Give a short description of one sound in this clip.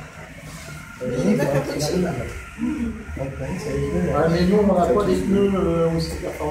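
Several adults chat calmly in a room nearby.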